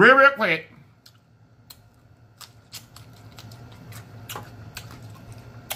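A man chews food with wet smacking sounds.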